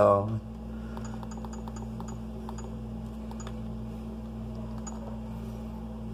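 Buttons on a handheld game console click softly as they are pressed.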